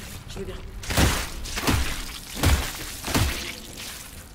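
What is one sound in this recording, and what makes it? Heavy boots stomp hard on a body with wet, crunching thuds.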